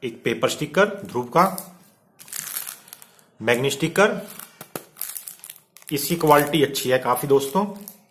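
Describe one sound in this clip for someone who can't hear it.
Plastic wrapping crinkles.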